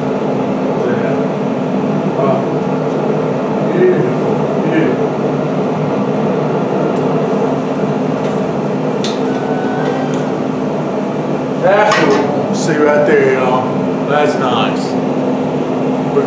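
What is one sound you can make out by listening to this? Food sizzles steadily on a hot grill.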